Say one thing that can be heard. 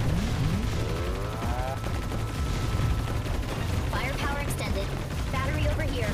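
Rapid laser shots and explosions crackle in a video game.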